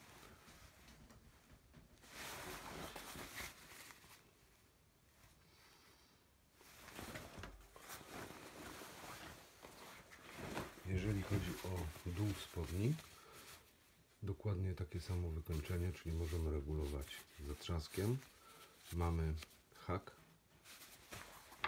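Fabric rustles and crumples as clothing is handled.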